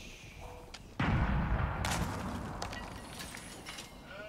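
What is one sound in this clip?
A cannon booms and then rumbles away.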